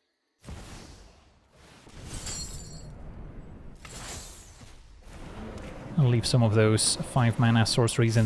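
Magical swooshing game sound effects play.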